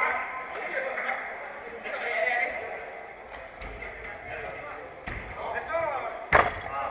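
Men shout to each other across an indoor pitch with an echoing sound.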